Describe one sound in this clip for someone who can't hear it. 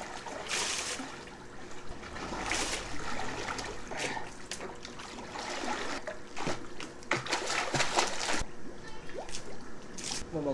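Water splashes as a man swims.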